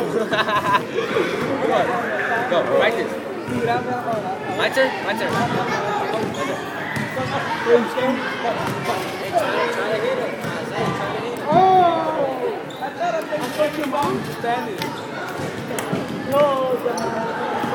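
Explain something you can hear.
Many voices chatter and echo in a large hall.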